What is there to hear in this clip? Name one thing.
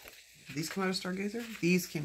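Paper sheets rustle as they are turned.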